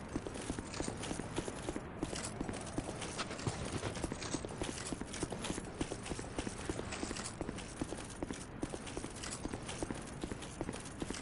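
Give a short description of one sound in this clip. Armoured footsteps crunch quickly through snow.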